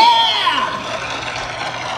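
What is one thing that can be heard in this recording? A man sings a long note that slides down at the end through a loudspeaker.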